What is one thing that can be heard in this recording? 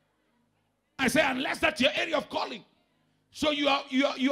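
A man speaks with animation through a microphone over loudspeakers.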